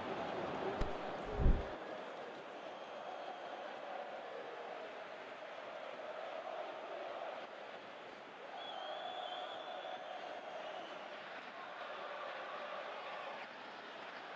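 A large stadium crowd murmurs steadily in the distance.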